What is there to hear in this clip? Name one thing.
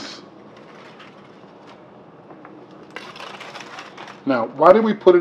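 Aluminium foil crinkles and rustles.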